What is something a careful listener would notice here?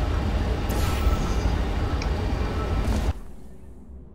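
A rushing whoosh roars through a portal, then cuts off abruptly.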